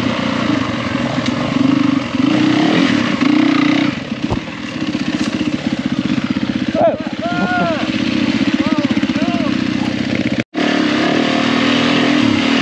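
A motorbike engine putters and revs up close.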